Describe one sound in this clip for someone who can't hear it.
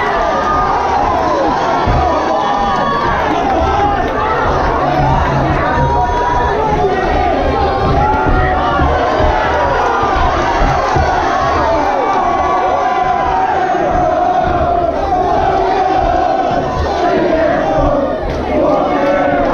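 A crowd of spectators shouts and cheers loudly throughout.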